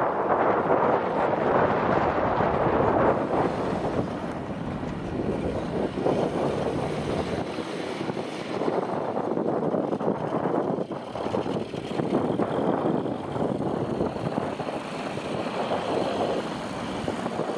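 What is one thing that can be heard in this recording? Wind blusters across open ground outdoors.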